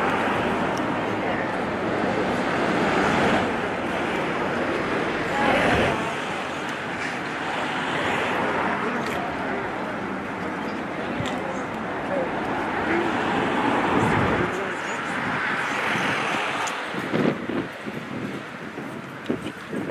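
A crowd of men and women murmur and talk quietly nearby, outdoors.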